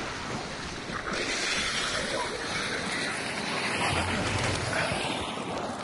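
Water splashes with each step of someone wading through it.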